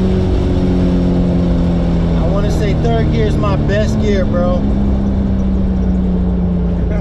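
Road and wind noise rush past an open car.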